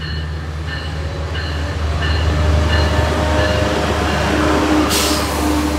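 Train wheels clatter on the rails as the train passes close by.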